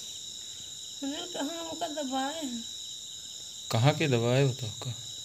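A woman moans and wails in distress close by.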